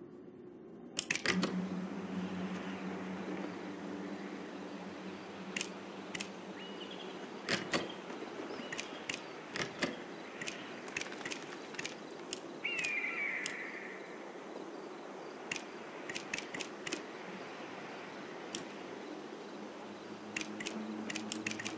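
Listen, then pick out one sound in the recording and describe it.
Short interface clicks tick as menu options change.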